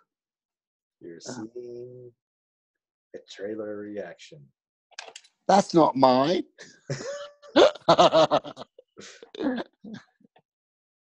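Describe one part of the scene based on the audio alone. Several men talk and laugh with animation over an online call.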